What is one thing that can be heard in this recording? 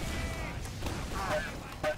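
A heavy rotating gun fires in rapid bursts.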